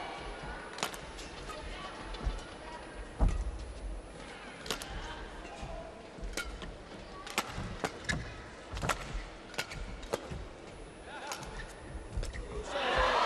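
Shuttlecock hits crack sharply from rackets in a large echoing hall.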